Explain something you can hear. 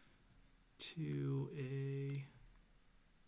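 A man hums briefly, close to a microphone.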